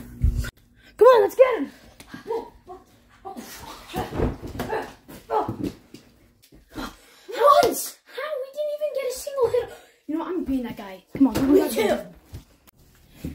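Children shout and squeal excitedly close by.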